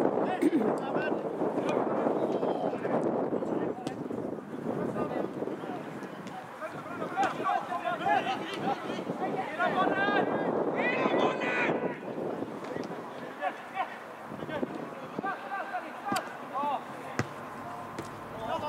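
Young players shout and call to each other across an open field outdoors.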